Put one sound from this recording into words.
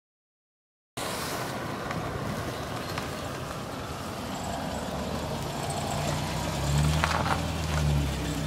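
A car engine runs as a car drives slowly past.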